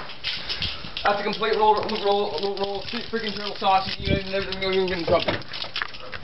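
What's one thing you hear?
A young man talks loudly and drawn out nearby.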